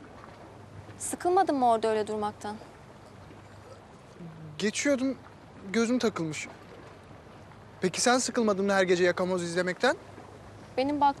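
A young woman speaks quietly nearby in short phrases.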